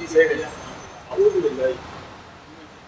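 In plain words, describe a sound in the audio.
A woman speaks nearby.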